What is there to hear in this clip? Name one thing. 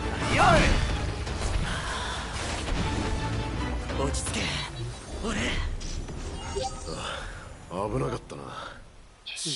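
Weapons clash and bang in a fast fight.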